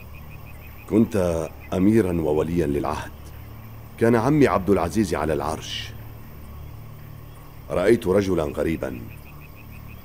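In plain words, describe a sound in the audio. A man speaks calmly and closely, in short phrases with pauses.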